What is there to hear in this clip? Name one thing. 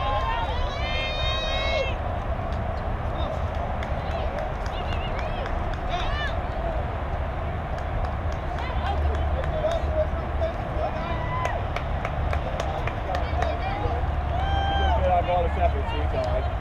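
Young girls call out and cheer across an open field.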